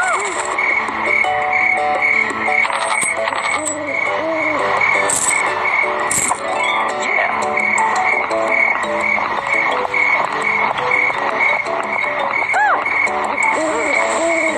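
Cheerful game music plays with a steady beat.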